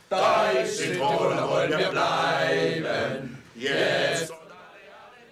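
A group of men sing loudly together.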